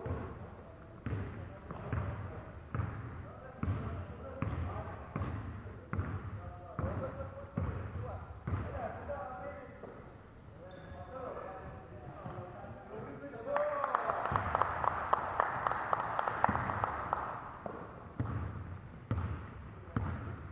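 A basketball bounces with dull thumps in a large echoing hall.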